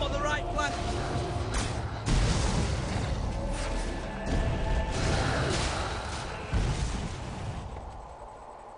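Explosions boom and rumble loudly.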